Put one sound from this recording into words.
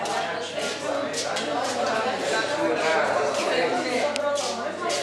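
A group of young people chatter together indoors.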